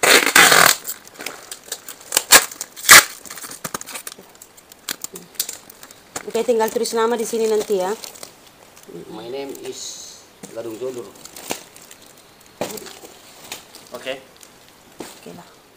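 Woven plastic strips rustle and crinkle as a basket is handled.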